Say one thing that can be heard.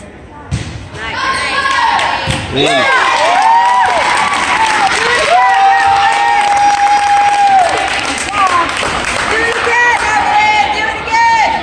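A crowd of spectators cheers and shouts loudly in a large echoing hall.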